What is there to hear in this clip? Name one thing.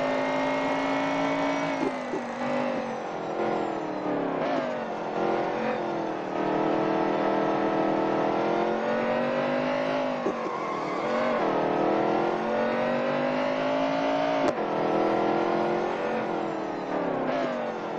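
A race car engine roars, its pitch dropping and rising as the car slows through turns and speeds up again.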